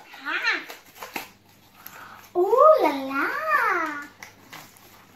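A young girl speaks brightly and playfully close by.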